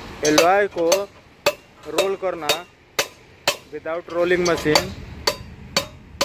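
A hammer strikes metal with sharp clangs.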